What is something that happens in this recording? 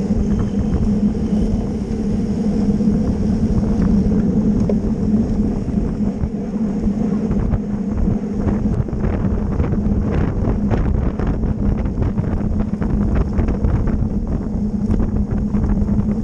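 Wind rushes and buffets loudly past a moving rider.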